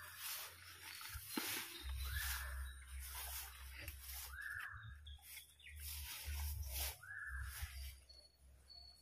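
Leaves and ferns rustle and swish as a person pushes through dense undergrowth.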